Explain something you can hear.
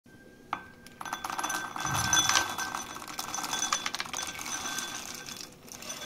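Dry peanuts rattle and clatter as they pour into a glass bowl.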